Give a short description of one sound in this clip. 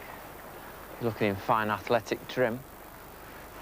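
An elderly man speaks calmly and clearly, close by.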